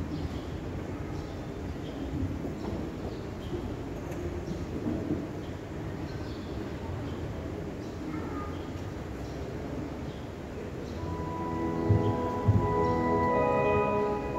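A man plays a piano in a large echoing room.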